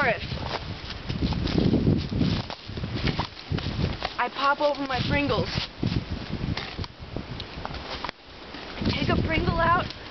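Dry leaves rustle and crunch underfoot.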